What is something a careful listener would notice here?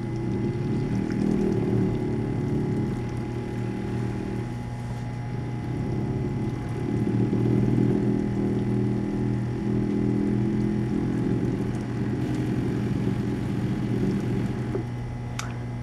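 A vortex mixer whirs steadily, then stops.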